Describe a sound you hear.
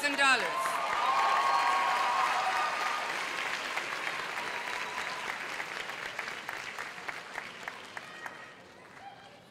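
A crowd cheers and applauds loudly in a large hall, then fades.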